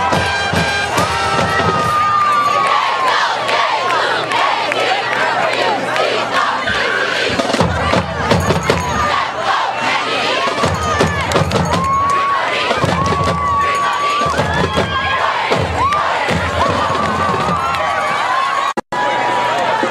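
A marching band plays brass and drums outdoors.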